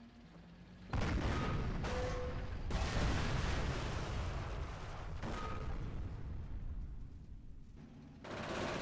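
Loud explosions boom and rumble nearby.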